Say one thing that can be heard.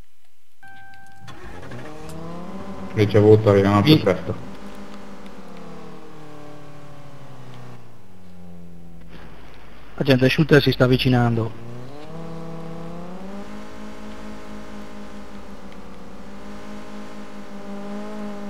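A car engine hums and revs.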